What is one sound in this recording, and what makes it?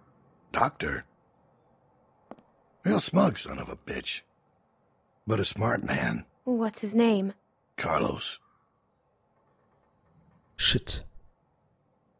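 A young woman speaks quietly.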